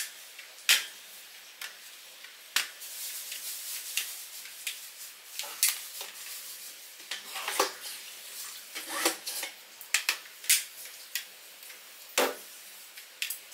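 Bare feet shuffle and patter on a hard floor.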